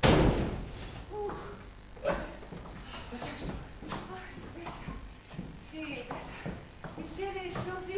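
A woman speaks theatrically in an echoing room.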